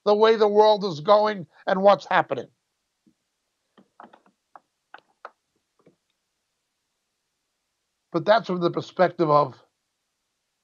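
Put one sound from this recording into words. A middle-aged man speaks calmly into a close microphone, in short bursts with pauses.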